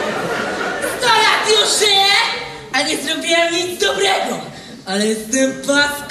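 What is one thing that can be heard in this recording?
A young woman speaks.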